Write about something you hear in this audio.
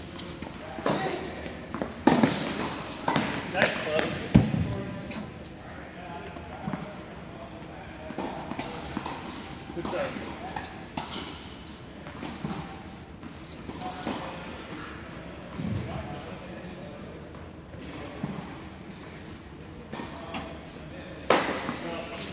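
Tennis balls pop off rackets in an echoing indoor hall.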